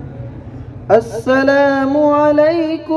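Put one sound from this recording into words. A man chants a recitation through a loudspeaker in a large echoing hall.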